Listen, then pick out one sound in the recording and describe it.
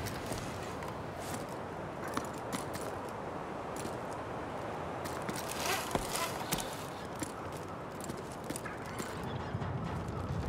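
A climber's gear clicks and taps while hauling up a rope.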